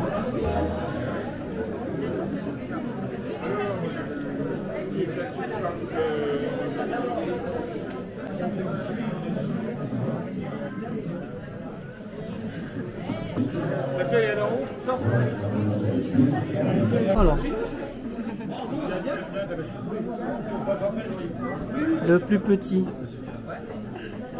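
A crowd of people chatters indoors in the background.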